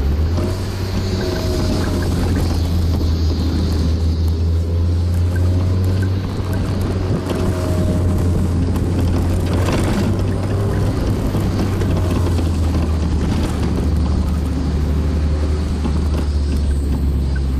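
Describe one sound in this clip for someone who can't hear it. Wind rushes loudly past an open-top car.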